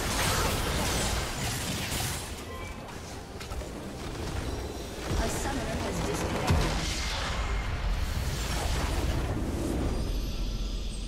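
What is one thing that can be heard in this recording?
Game spell effects crackle and boom during a battle.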